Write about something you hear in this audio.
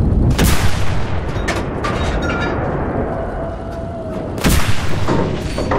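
A tank cannon fires with loud booms that echo away.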